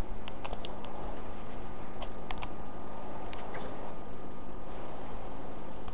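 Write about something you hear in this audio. Footsteps run and rustle through tall grass.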